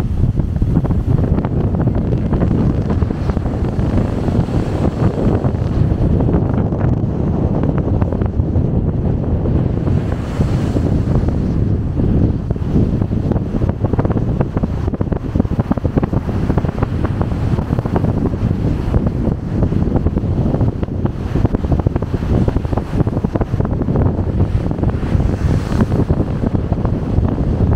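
Churning sea water rushes and foams loudly and steadily below.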